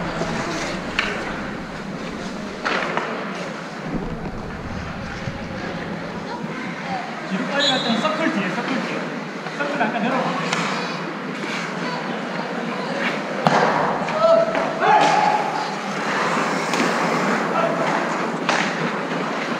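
Hockey sticks clack against the ice and each other.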